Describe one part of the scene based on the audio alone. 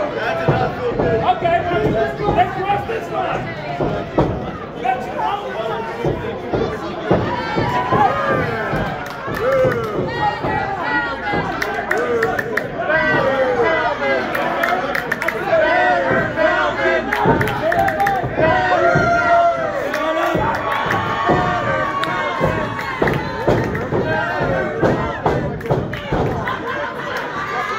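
Audience members shout loudly nearby.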